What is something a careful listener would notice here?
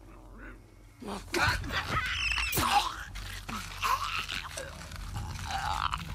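A snarling creature shrieks and gurgles up close.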